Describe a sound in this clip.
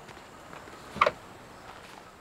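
A wooden panel knocks as it is swung open.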